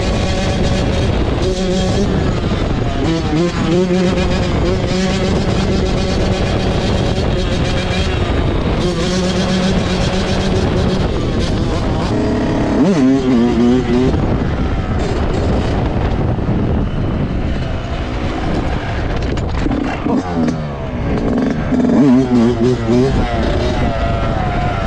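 Wind buffets loudly past the rider.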